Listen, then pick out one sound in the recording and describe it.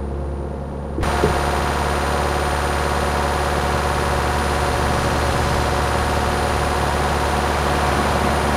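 A car engine roars loudly and steadily with road noise.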